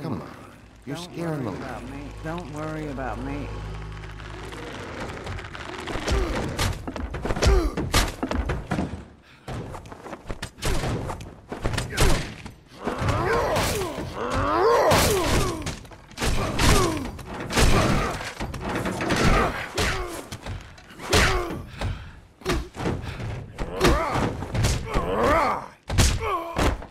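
A man talks excitedly into a microphone.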